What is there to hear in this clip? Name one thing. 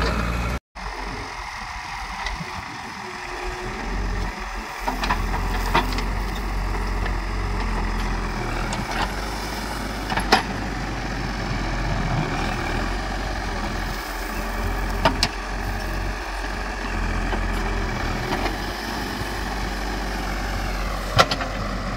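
A digger's bucket scrapes and clanks against earth and stones.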